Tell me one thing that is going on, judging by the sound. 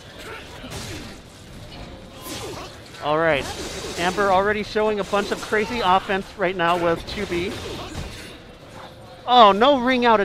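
Blades clash and strike with sharp metallic hits.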